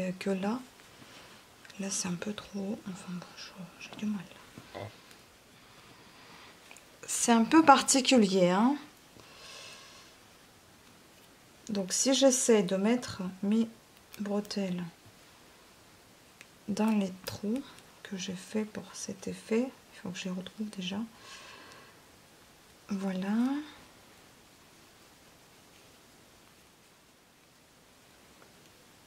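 Knitted fabric rustles softly as hands handle it.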